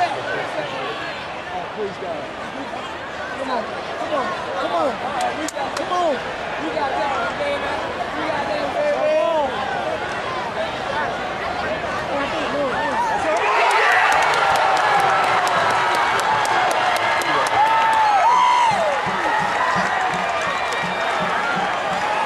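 A large stadium crowd roars and shouts.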